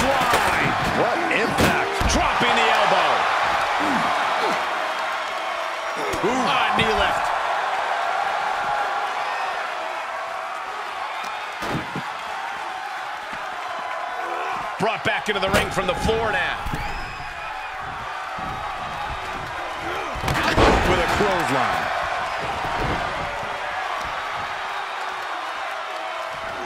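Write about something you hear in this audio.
A large crowd cheers loudly in an echoing arena.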